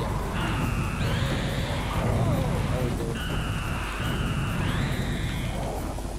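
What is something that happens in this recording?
An explosion booms and splatters.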